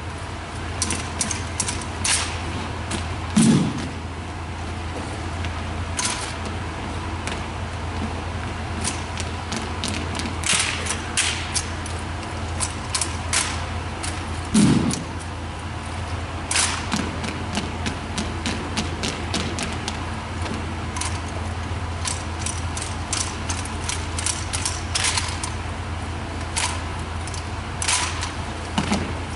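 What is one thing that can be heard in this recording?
Rifles clap and knock sharply in unison, echoing in a large hall.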